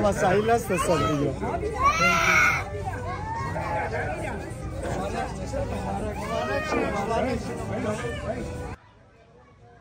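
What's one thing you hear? Several men talk and chatter at once nearby.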